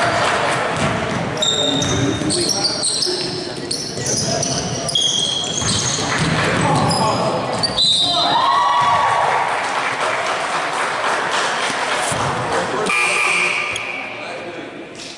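Spectators and players chatter in a large echoing gym.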